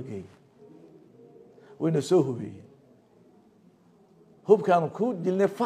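An elderly man speaks calmly and slowly into a microphone, close by.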